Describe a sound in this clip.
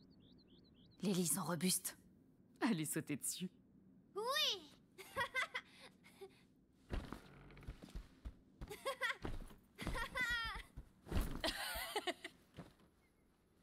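A young woman speaks calmly and close by.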